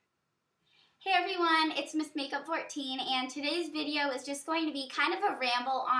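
A teenage girl talks cheerfully and with animation, close to a microphone.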